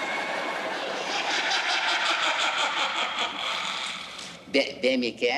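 A woman laughs shrilly.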